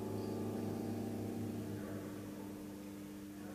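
A piano note rings out and slowly fades.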